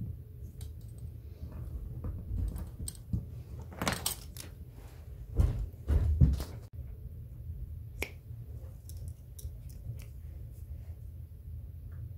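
Leather rustles and scrapes as hands handle it.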